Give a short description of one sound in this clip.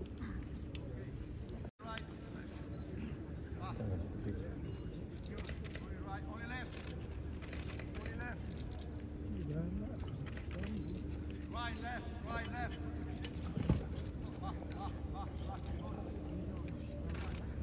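Footsteps thud softly on grass as a group jogs.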